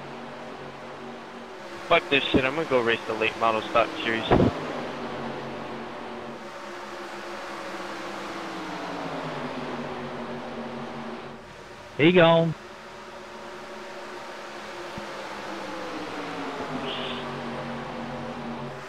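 Race car engines drone steadily at high speed.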